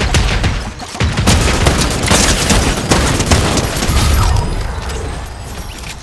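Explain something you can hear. A rifle fires several shots in quick bursts.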